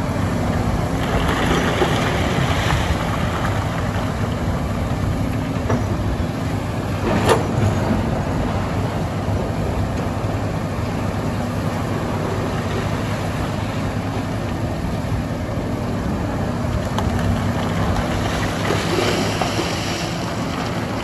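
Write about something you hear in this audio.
Rocks scrape and clatter as an excavator bucket digs.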